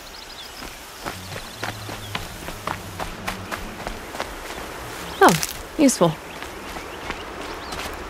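Footsteps crunch quickly through dry grass and dirt.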